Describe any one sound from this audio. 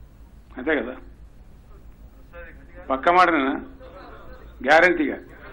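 An elderly man speaks slowly and deliberately into a microphone, in short phrases with pauses.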